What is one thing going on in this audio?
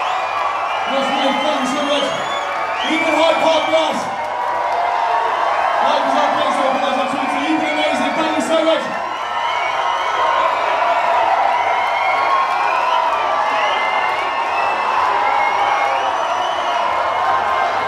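A band plays amplified music over loudspeakers.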